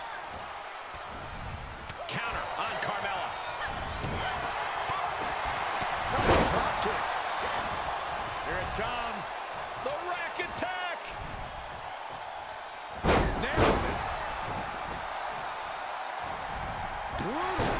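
Fists and kicks thud against bodies.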